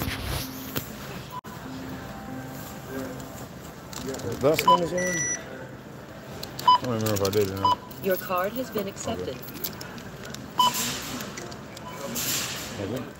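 A checkout scanner beeps short and high several times.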